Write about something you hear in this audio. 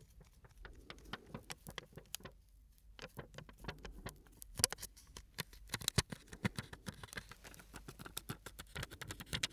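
Fingers tap and scratch a small object close to a microphone.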